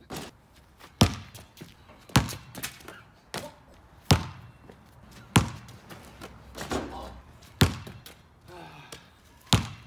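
A basketball bounces hard on concrete.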